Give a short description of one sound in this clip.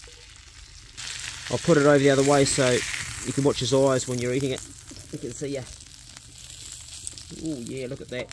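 Fat sizzles and hisses on a hot pan.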